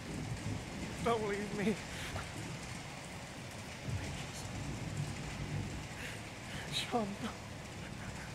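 A young man pleads in a distressed, tearful voice close by.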